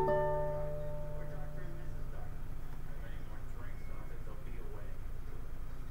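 An acoustic guitar is strummed close by, with a ringing chord that slowly fades.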